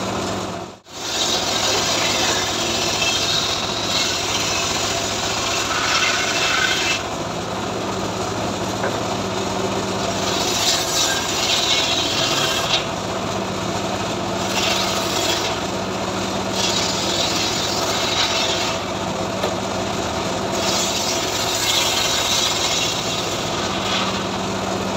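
An engine hums steadily.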